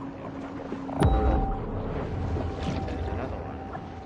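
Water rumbles and churns underwater.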